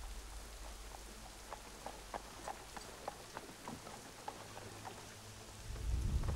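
Horse hooves clop at a steady trot.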